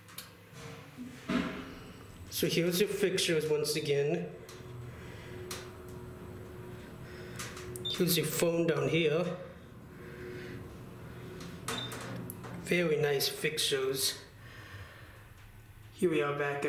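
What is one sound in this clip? An elevator hums softly as it moves.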